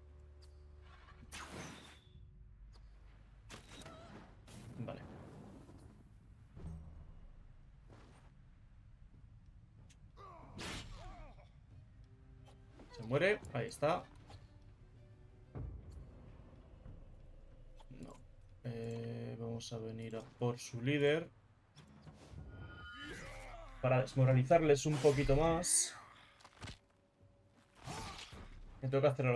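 Swords clash and strike in a fight.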